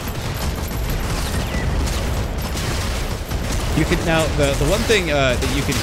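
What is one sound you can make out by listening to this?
Gunfire and explosions rumble from a video game.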